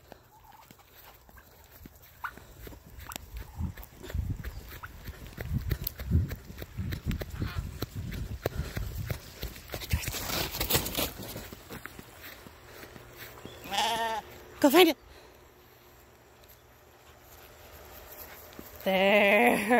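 A dog runs across grass.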